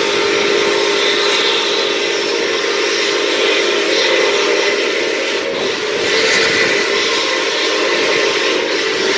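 A train rumbles and clatters steadily along the tracks close by.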